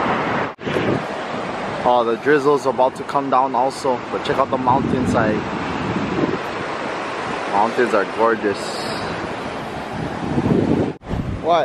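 Waves wash steadily onto a sandy shore.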